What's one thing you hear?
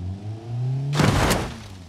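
A car crashes with a sudden loud metallic smash.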